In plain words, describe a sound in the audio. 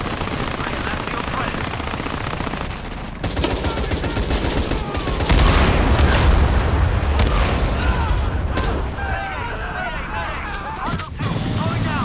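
A helicopter's rotors thump overhead.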